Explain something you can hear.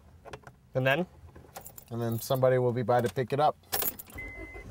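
A young man speaks quietly in a car.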